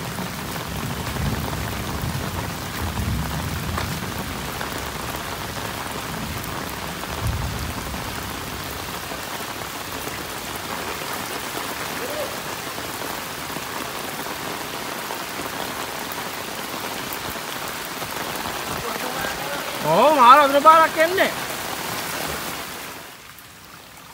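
Heavy rain falls outdoors.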